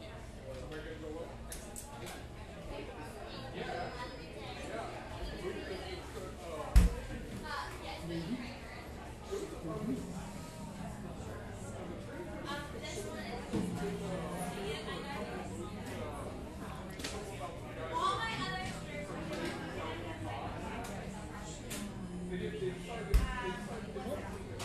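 Men and women chatter in a murmur throughout a busy room.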